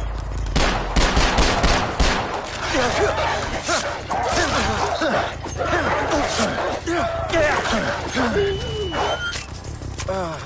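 Wolves snarl and yelp.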